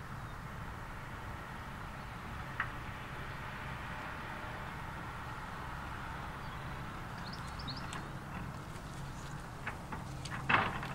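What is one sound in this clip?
A steam train chugs steadily in the distance.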